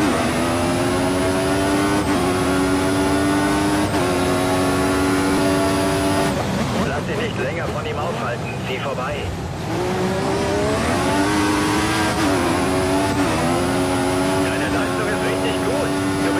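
A racing car engine screams at high revs, climbing and dropping sharply with each gear change.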